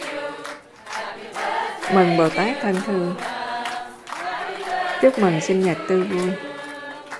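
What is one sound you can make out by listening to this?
A crowd claps along.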